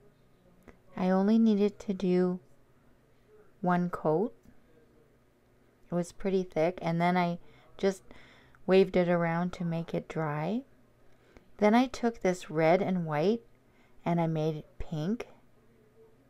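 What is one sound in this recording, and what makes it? A woman talks calmly and clearly, close to the microphone.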